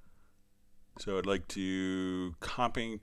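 A synthesizer plays a short run of notes.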